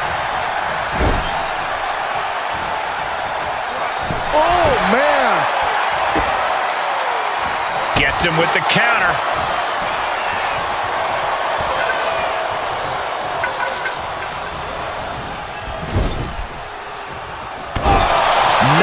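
Blows land with heavy thuds.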